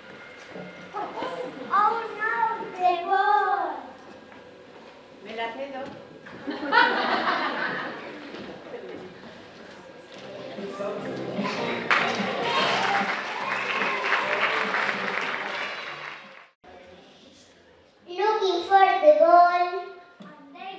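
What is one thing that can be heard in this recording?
Young children speak out loudly in an echoing hall.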